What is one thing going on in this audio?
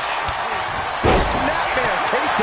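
A heavy body slams down onto a wrestling mat with a loud thud.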